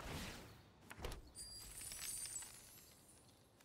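A shimmering magical sound effect sparkles briefly.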